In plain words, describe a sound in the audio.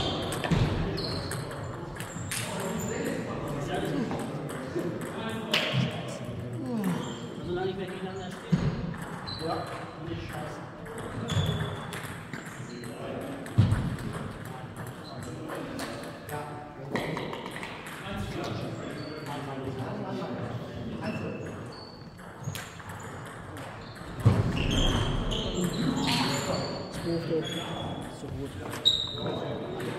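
Ping-pong balls click on tables and paddles in a large echoing hall.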